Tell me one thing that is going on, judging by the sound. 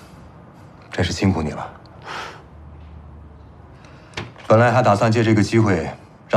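A middle-aged man speaks calmly and warmly, close by.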